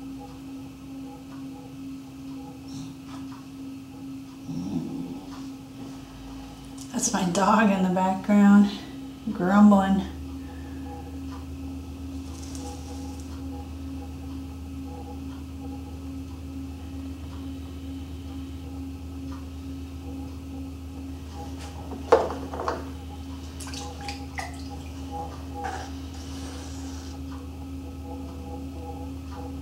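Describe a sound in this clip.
A potter's wheel hums steadily as it spins.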